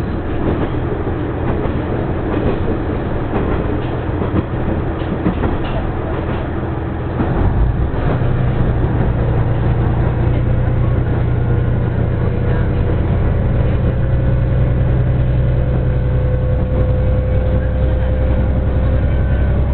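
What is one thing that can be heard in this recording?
A train rumbles steadily along its tracks.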